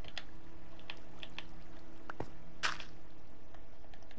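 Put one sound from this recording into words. Soft, dull thuds sound as blocks are placed one after another.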